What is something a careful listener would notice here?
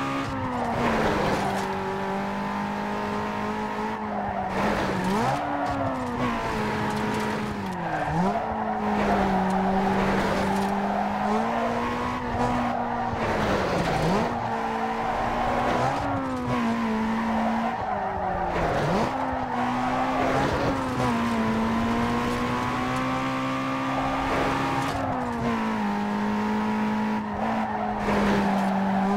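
Tyres screech while a car drifts through corners.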